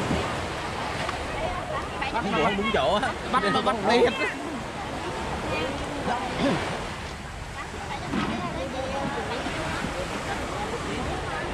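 Several men and women talk with animation nearby.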